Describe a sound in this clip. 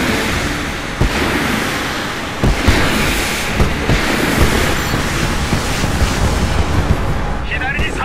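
Gunfire booms in sharp bursts.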